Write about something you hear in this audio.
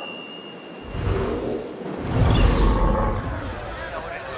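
A large bird's wings beat and whoosh past.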